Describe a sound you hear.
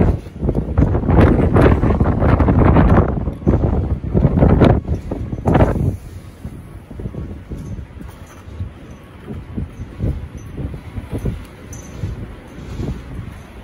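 Strong wind gusts and buffets loudly outdoors.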